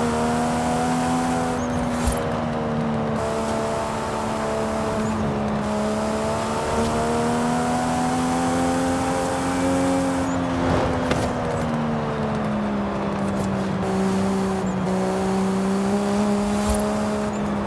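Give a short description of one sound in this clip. A racing car engine roars steadily at high revs, its pitch rising and falling through gear shifts.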